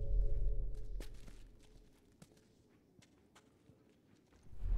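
Footsteps shuffle softly on gritty ground.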